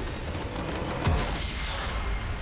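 A base structure shatters with a loud crash.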